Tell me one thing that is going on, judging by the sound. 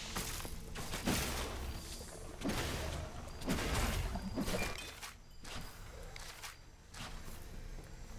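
Weapons strike enemies with sharp hits.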